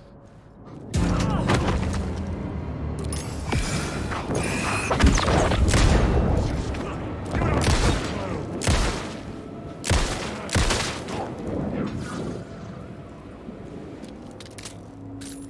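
Electric sparks burst and crackle loudly.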